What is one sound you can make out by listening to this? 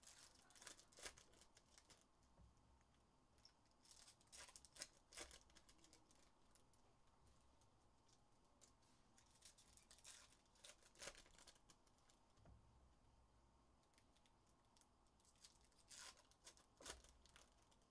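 Card packs tap and click against a tabletop.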